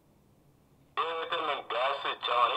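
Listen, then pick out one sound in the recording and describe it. Loud sound suddenly plays from a laptop's small speakers.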